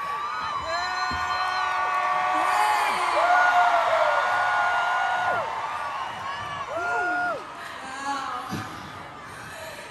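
A young woman talks and laughs through a microphone in a large echoing hall.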